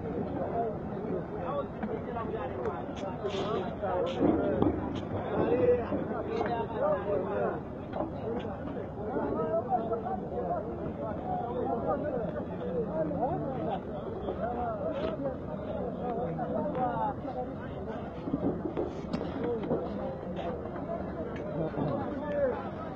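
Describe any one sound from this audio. A crowd of men shout and talk excitedly close by.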